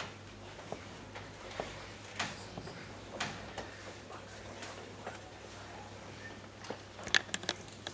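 Sheets of paper rustle and flip.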